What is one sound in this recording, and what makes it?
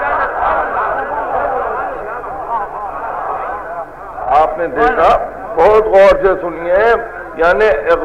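A man speaks with animation through an old, muffled recording.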